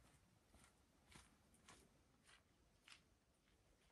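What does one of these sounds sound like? Footsteps crunch across grass at a distance.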